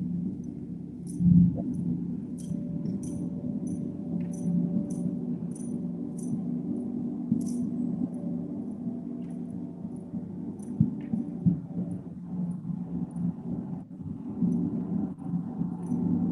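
A large gong hums with a deep, steady, swelling drone.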